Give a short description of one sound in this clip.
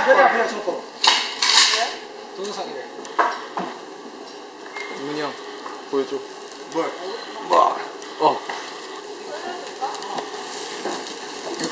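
Young people talk and laugh nearby.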